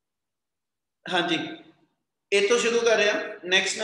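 A man speaks calmly and close to the microphone.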